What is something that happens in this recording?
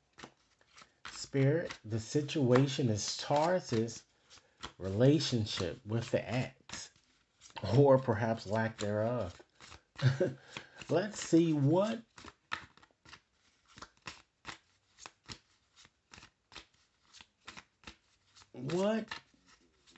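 Playing cards riffle and snap as a deck is shuffled by hand, close by.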